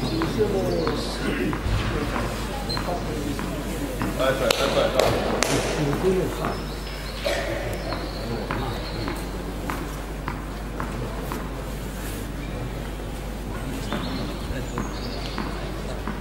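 A tennis ball bounces on a clay court.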